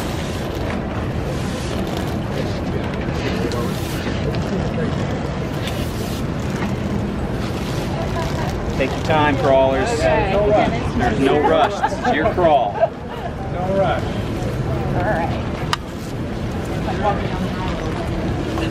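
A crowd murmurs steadily outdoors.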